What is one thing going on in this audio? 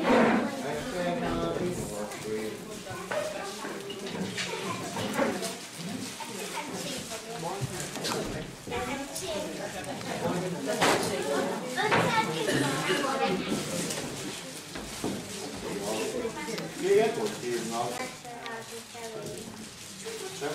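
A boy talks nearby.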